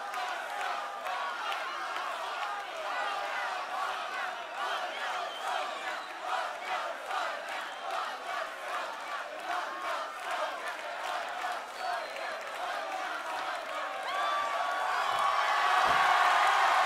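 A large crowd cheers and whistles in the open air, swelling louder toward the end.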